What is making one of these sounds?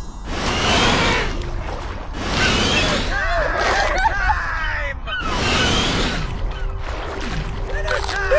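Water splashes as a large fish leaps in and out of the sea.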